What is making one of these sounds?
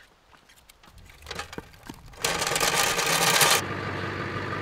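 Wood clatters as it is dumped into a stone fire pit.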